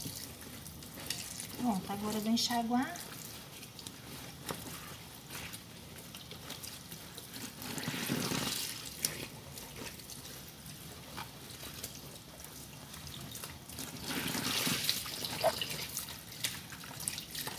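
Wet clothes are scrubbed and rubbed by hand.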